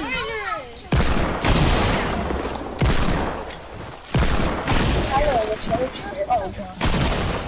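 Gunshots fire in loud bursts with crashing blasts.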